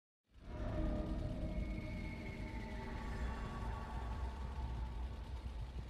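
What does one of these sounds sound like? A chainsaw idles with a low, steady rumble.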